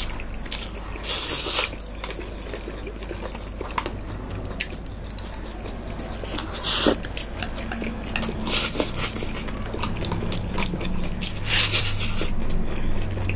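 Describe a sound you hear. A young woman slurps noodles loudly up close.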